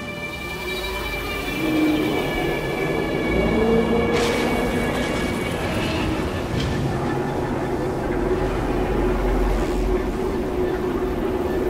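A spaceship engine hums and rumbles steadily.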